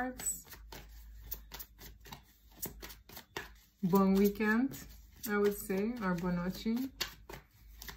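Playing cards tap and rustle as they are shuffled.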